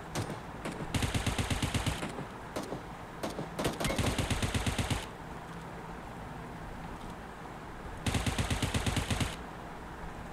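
Rapid bursts of automatic gunfire ring out, loud and close.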